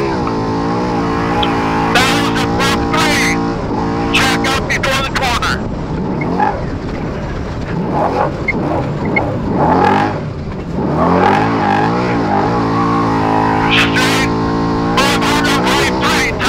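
A vehicle engine roars and revs up and down while driving.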